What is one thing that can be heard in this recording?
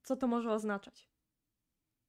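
A young woman speaks clearly into a microphone, close by.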